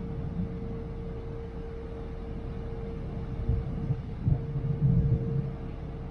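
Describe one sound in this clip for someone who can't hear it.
A ferry engine hums steadily.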